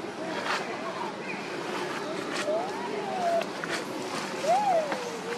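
Dry leaves rustle as monkeys move on the ground.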